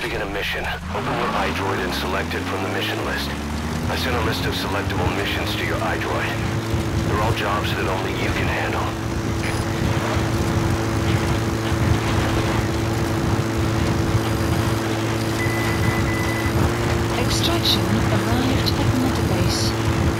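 Tyres rumble over a dirt road.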